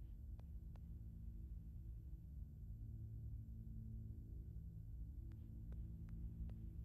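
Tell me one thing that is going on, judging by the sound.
Soft footsteps tap on a hard floor.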